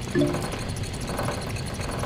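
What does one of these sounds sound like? A fire crackles softly in a stove.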